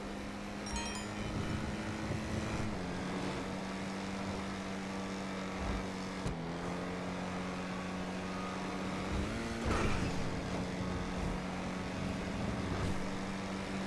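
A car engine hums steadily, dropping in pitch as it shifts gears and revving up briefly.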